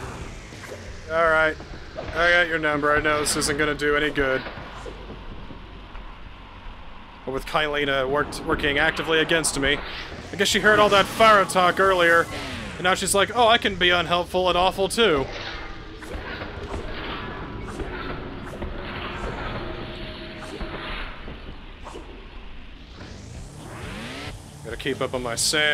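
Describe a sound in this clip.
Swords whoosh through the air.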